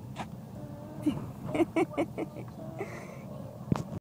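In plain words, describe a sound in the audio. A young child giggles softly, close by.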